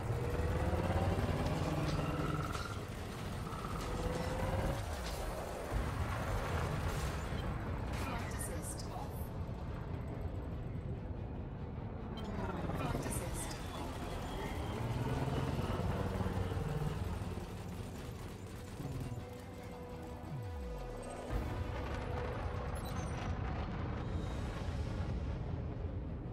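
A spaceship engine rumbles and whooshes with shifting pitch.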